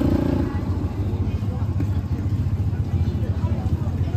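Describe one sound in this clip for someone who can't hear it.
A motorbike engine hums as it rides along the street.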